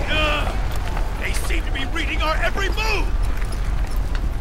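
A man grunts and speaks tensely.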